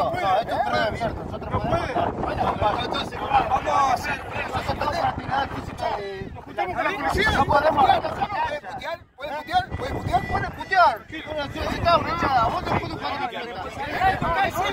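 A man speaks heatedly, close by.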